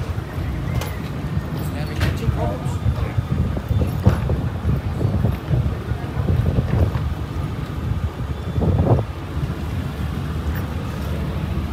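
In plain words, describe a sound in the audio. Water laps against a hull.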